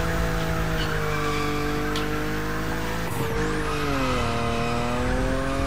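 A car engine roars steadily at high revs, with the pitch dipping slightly and then settling.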